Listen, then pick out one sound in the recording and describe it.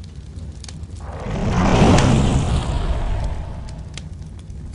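A fireball bursts with a deep roaring whoosh that slowly fades.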